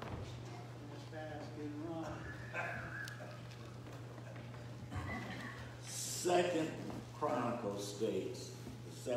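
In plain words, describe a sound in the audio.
An elderly man speaks with animation into a microphone in an echoing hall.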